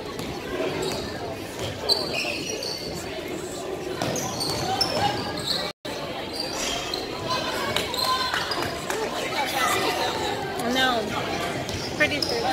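Spectators murmur and call out in a large echoing gym.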